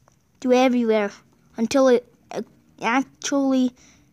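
A ballpoint pen scratches across paper.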